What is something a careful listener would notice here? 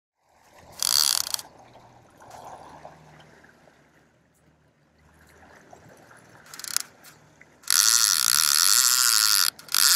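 A fishing reel's drag buzzes loudly as line runs out in bursts.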